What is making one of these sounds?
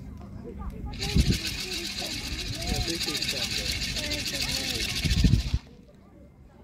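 A rattle shakes rapidly and loudly.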